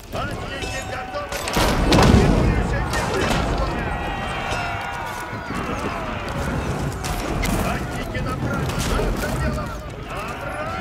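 Swords clash and armour clatters in a battle.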